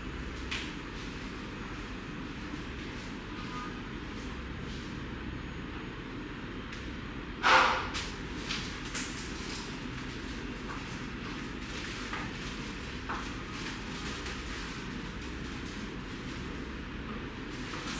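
Hands rub foam softly on a face.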